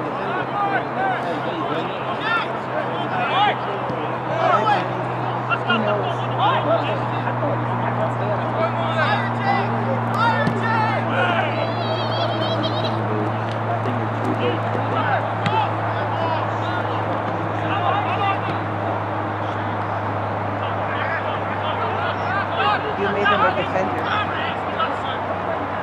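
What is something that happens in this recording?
A football thumps as it is kicked.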